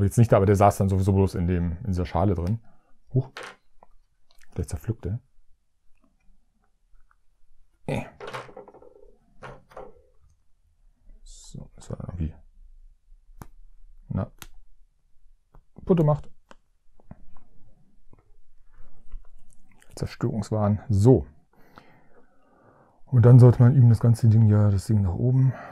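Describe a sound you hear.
Small plastic parts click and snap together.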